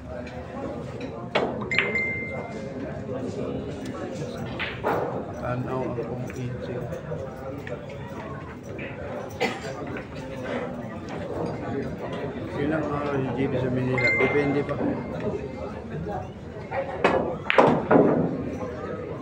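A crowd murmurs nearby.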